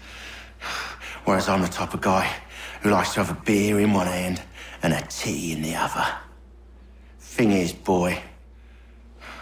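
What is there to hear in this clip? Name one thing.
A man speaks slowly and menacingly, close up.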